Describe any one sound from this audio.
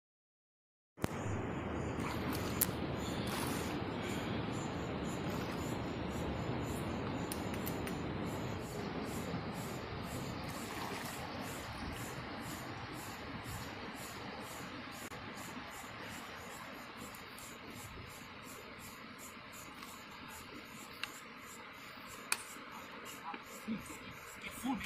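Water splashes gently as a man wades through a shallow river.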